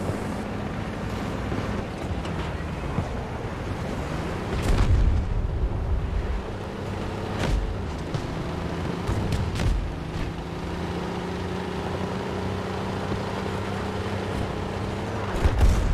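Tank tracks clank.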